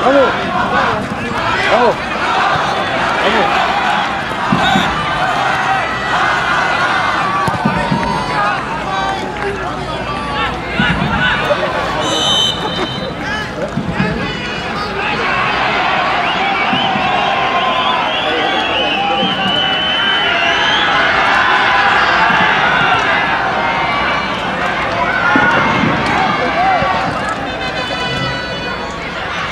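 A large crowd cheers and chatters loudly outdoors.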